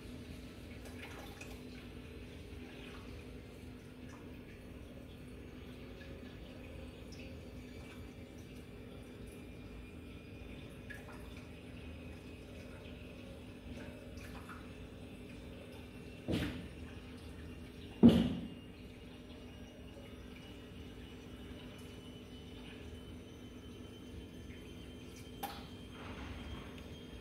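Air bubbles gurgle steadily through water in a tank.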